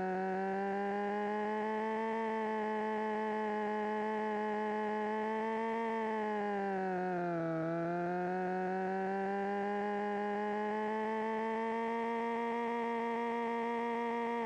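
A car engine drones steadily, dipping briefly in pitch before rising again.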